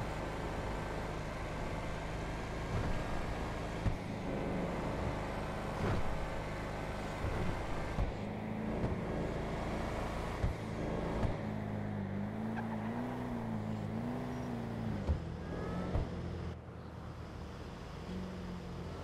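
A car engine hums steadily while driving on a road.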